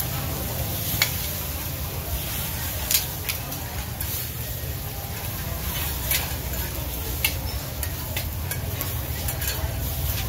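Metal ladles clink against pots and a pan.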